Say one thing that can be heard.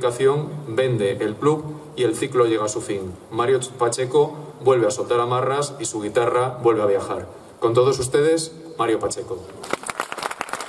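A man speaks calmly through a microphone and loudspeakers, outdoors.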